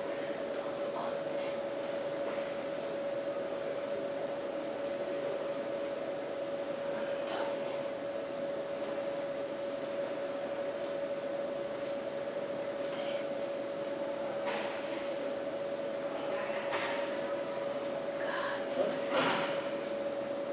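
A plastic chair creaks and knocks softly as a woman sits down on it.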